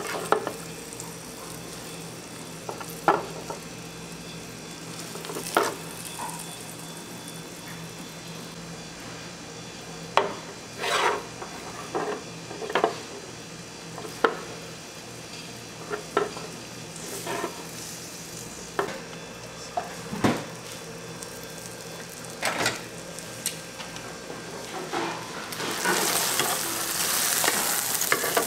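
A plastic spatula scrapes and taps against a metal pan.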